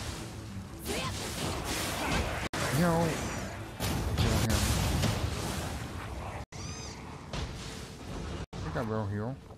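Swords clash and slash in a fight.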